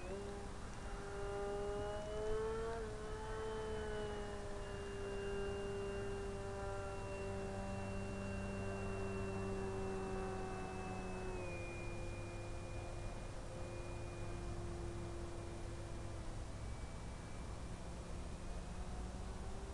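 An aircraft engine drones steadily overhead, its pitch slowly dropping.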